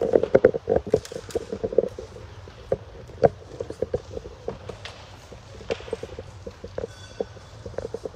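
A metal music stand rattles as it is moved and adjusted.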